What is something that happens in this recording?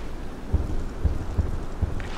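Heavy footsteps thud on the ground.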